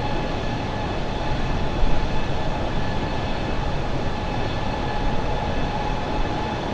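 Jet engines roar steadily with a constant rushing hum.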